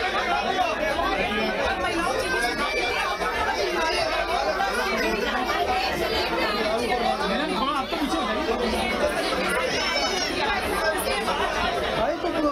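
A crowd of women and children chatter and call out close by.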